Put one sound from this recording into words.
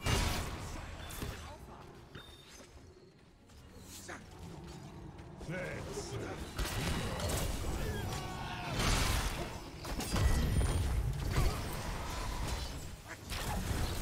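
Game battle effects clash and blast with magic zaps and impacts.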